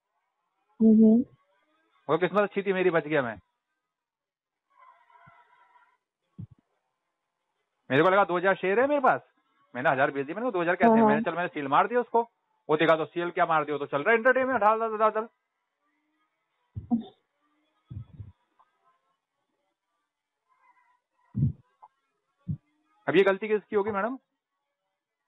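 A woman speaks over a phone line in bursts.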